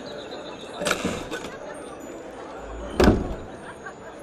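A heavy wooden chest lid thuds open.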